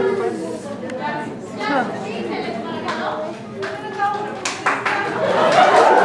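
A young woman speaks sharply, heard from within an audience.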